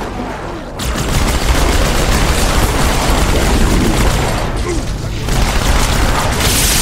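Automatic gunfire rattles rapidly.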